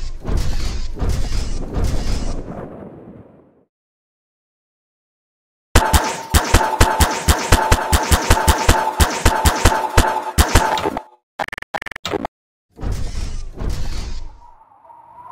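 An electric gun fires rapid buzzing zaps.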